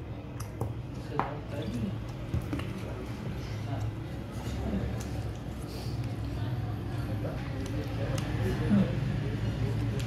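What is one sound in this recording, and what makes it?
A man gulps water from a bottle close to the microphone.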